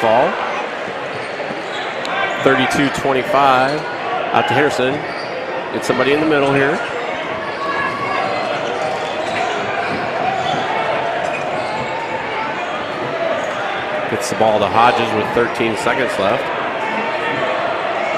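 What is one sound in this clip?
A basketball bounces on the floor as a player dribbles.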